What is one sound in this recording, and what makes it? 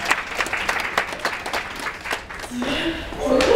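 A group of elderly people clap their hands.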